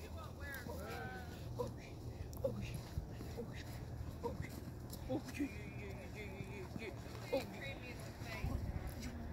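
A dog whines and yelps playfully.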